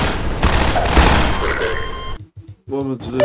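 Gunfire bursts loudly at close range.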